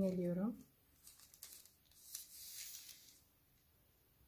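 A paper pattern rustles as it slides over fabric.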